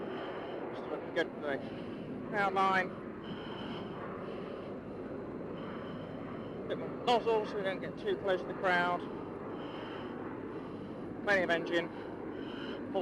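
A man speaks in short bursts over a crackly radio intercom.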